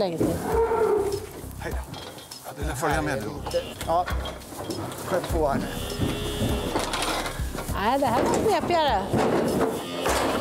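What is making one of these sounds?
A metal gate clanks.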